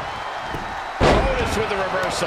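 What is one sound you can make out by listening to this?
A heavy body slams down hard onto a wrestling mat with a loud thud.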